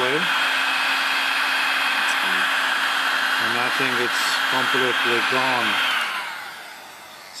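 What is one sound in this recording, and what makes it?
A heat gun blows with a steady, loud rushing hiss, then winds down.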